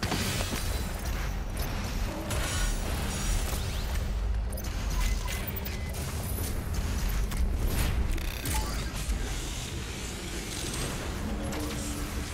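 Heavy guns fire in loud bursts.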